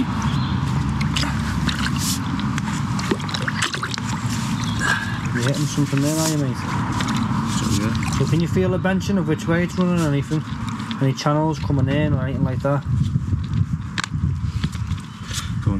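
Water sloshes and gurgles as a rod churns a drain.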